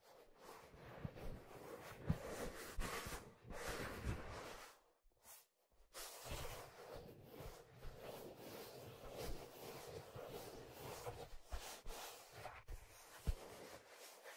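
Fingers tap and thump on a leather hat close to a microphone.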